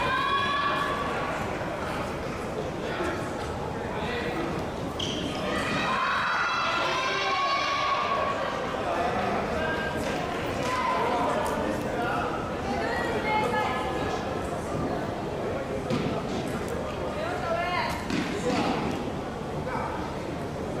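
Shoes squeak on a hard floor in an echoing hall.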